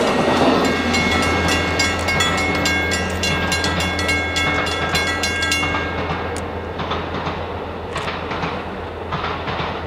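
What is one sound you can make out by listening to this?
A train rolls away on the tracks, wheels clattering over rail joints.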